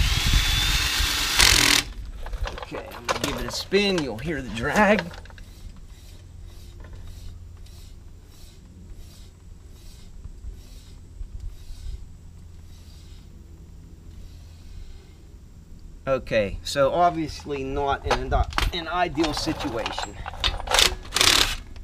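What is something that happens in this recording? An impact wrench whirs and rattles loudly.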